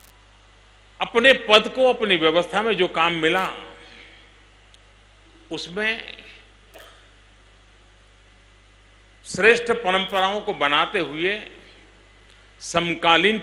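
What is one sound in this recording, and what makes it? An elderly man speaks calmly into a microphone over a loudspeaker, with pauses.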